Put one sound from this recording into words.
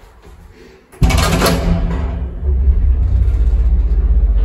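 A lift motor hums and rumbles as the car moves.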